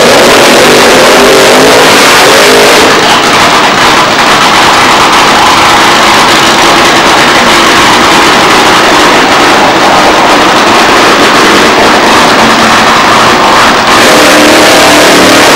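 Rear tyres of a top fuel dragster spin and squeal in a burnout.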